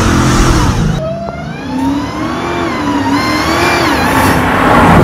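A car engine rumbles and rises as a car drives closer outdoors.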